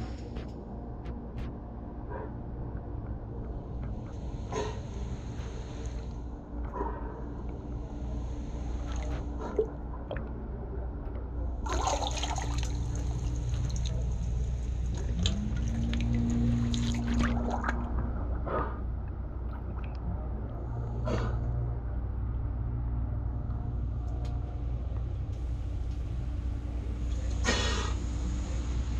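Water laps gently against pilings.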